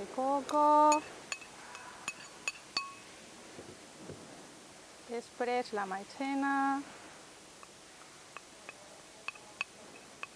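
Glass bowls clink against each other.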